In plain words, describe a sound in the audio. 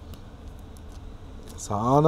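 Plastic film peels softly off a watch face.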